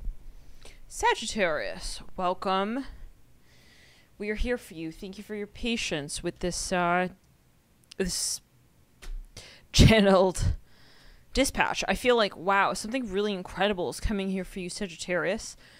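A young woman speaks calmly and close into a microphone.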